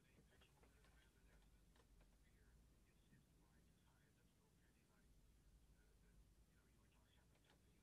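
A man speaks quietly into a microphone close by.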